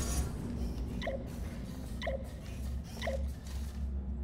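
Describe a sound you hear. A portal gun fires with short electronic zaps.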